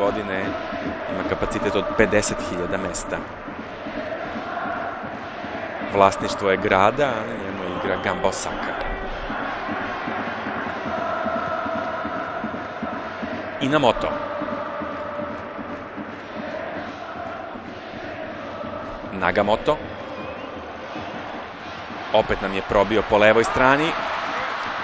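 A large crowd chants and roars steadily in a stadium.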